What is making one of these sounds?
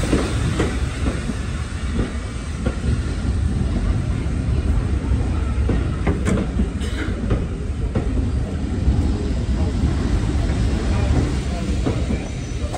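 Railway passenger coaches rumble past on the track.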